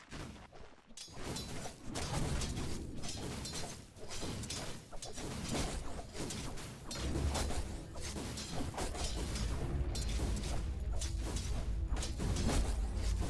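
Swords clash and spells crackle in a fast, busy fight.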